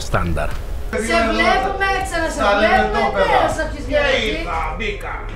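Several men talk and laugh together.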